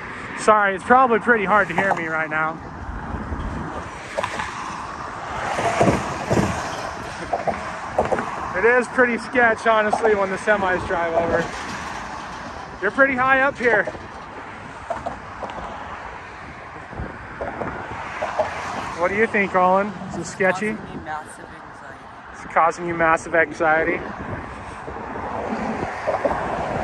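Traffic rushes past on a road nearby.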